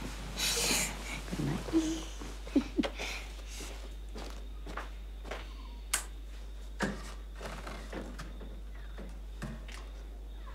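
Footsteps tread softly across a floor.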